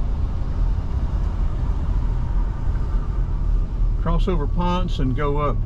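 A car engine hums low and steady from inside the car as it drives.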